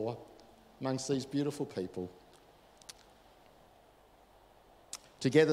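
A middle-aged man speaks with feeling into a microphone, in a slightly echoing room.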